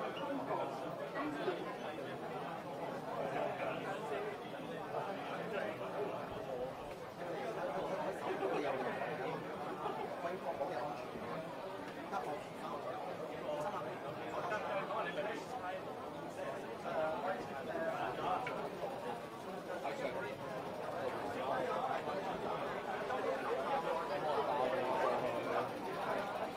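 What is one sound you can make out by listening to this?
A large crowd murmurs and chatters all around in an echoing hall.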